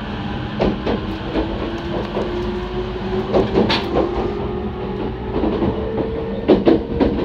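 Wheels of an electric commuter train clatter over rail joints.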